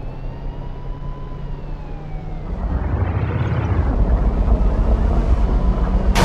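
A tank engine rumbles and grows louder as the tank drives off.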